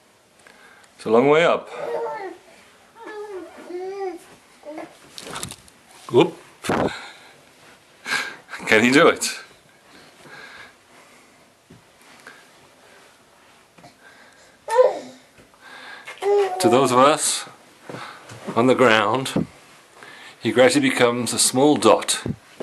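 A baby babbles and squeals up close.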